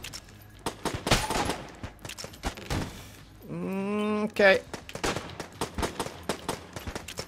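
Video game gunshots fire in quick bursts.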